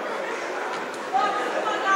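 A basketball bounces on a wooden court floor.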